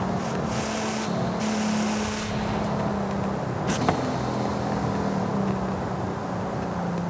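A sports car engine drones steadily as the car slows down.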